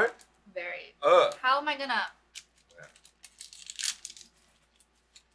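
A plastic snack wrapper crinkles.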